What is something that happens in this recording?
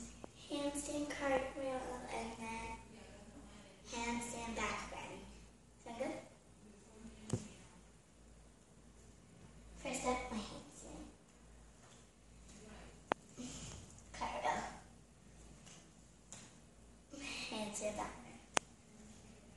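A young girl speaks close by, clearly and with animation.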